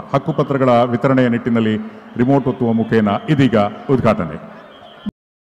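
An elderly man speaks through a microphone and a loudspeaker with animation.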